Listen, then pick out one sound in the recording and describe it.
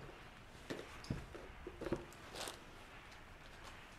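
A cardboard box is set down on a table with a soft thud.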